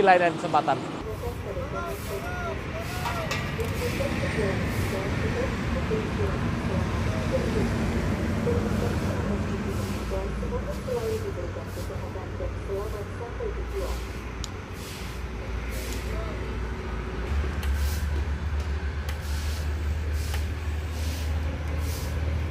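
A large bus engine rumbles as the bus slowly drives past.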